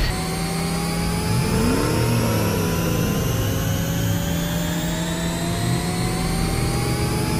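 A small engine hums steadily.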